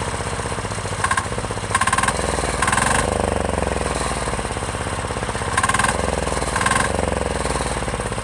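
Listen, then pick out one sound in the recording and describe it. A small engine briefly revs up and settles back.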